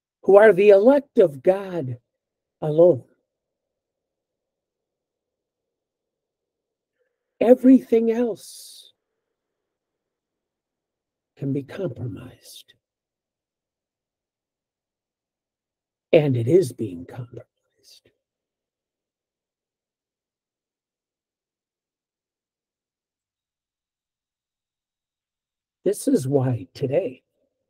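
An elderly man speaks calmly in short bursts with long pauses, heard through an online call.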